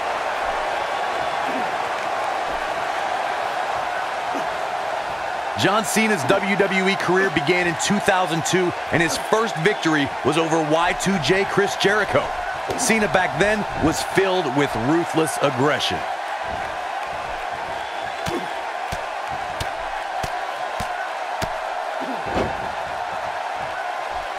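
A large crowd cheers and murmurs steadily in a big echoing arena.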